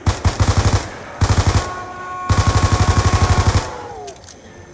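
Rapid automatic gunfire rattles in loud bursts.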